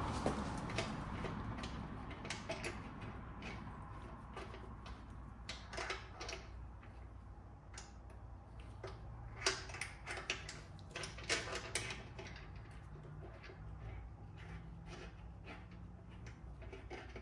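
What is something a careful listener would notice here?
A ratchet wrench clicks as a bolt is tightened.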